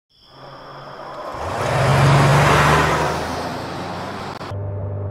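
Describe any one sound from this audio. A flying machine's engines roar loudly as it swoops overhead.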